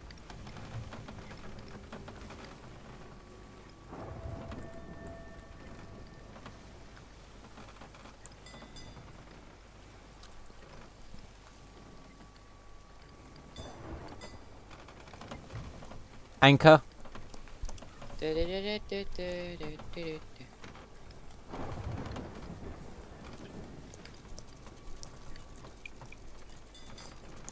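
Waves surge and crash around a sailing ship.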